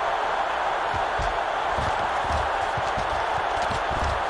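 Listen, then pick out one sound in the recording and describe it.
Football players collide with dull thuds.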